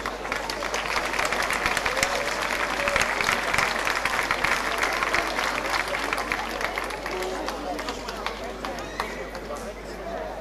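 An audience applauds loudly in an echoing hall, then the clapping dies down.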